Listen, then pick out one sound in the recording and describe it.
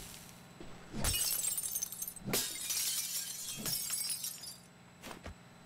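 Glass shatters and tinkles.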